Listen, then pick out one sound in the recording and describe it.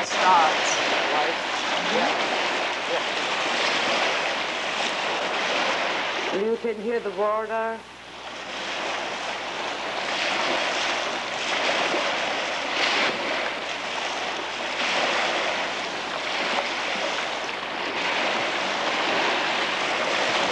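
Small lake waves break and wash onto a stony sand shore.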